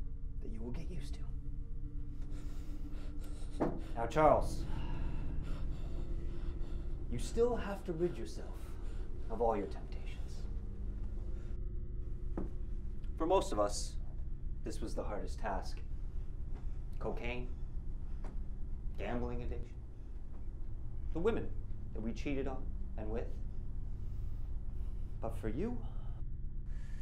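A young man speaks slowly and deliberately, with long pauses.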